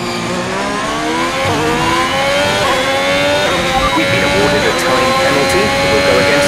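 A racing car engine screams, rising in pitch as it shifts up through the gears.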